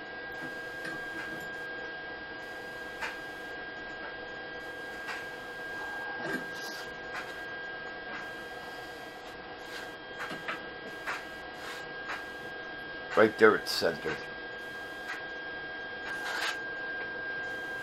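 Metal tools clink and clank against a steel frame.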